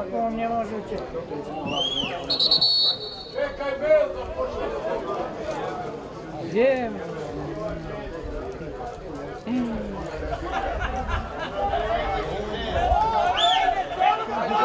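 Men shout and call out across an open outdoor field.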